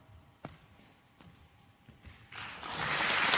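Footsteps tap on a wooden stage in a large echoing hall.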